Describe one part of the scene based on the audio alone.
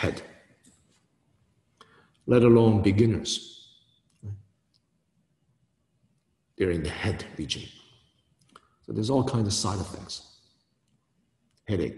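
A man speaks calmly and clearly into a nearby microphone, in short phrases with pauses.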